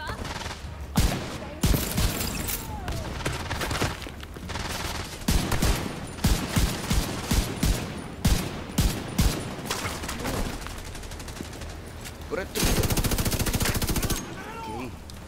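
Rifle shots crack in bursts, with a rapid stream of automatic fire.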